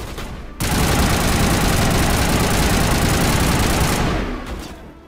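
A loud electric sparking blast crackles and roars.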